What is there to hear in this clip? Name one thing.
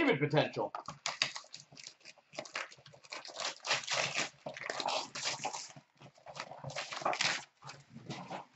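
Cardboard packaging rustles and tears as a box is opened.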